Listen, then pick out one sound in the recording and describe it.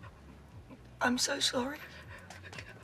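An older woman gasps in shock.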